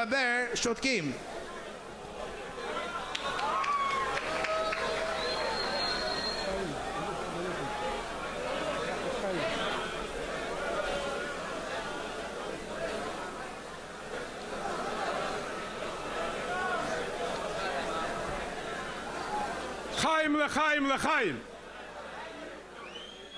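A crowd of men murmurs and chatters in a large echoing hall.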